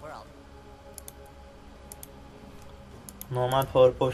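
Soft menu clicks chime from a video game.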